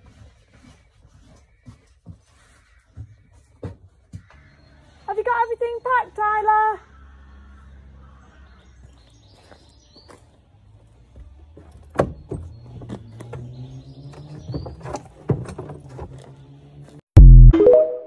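Saddlery and gear knock and thump.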